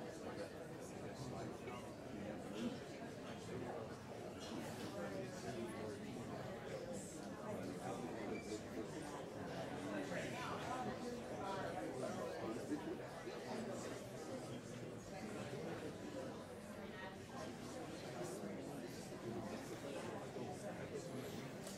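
A crowd of men and women chatter in small groups.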